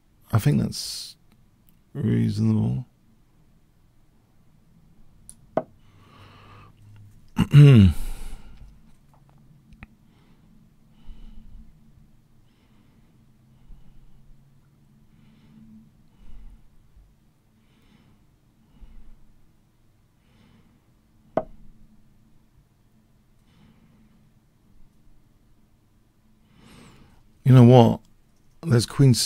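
A middle-aged man speaks in short bursts through a microphone, with pauses between.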